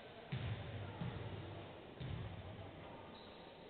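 A basketball thuds as it bounces on a wooden court in a large echoing hall.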